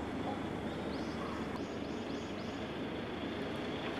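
A car drives slowly toward the listener with a low engine hum.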